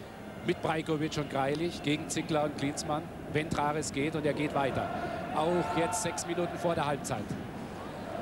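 A large stadium crowd chants loudly in unison.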